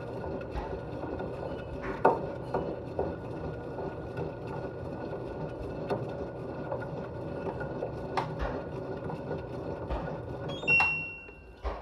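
Soapy water sloshes and churns inside a turning washing machine drum.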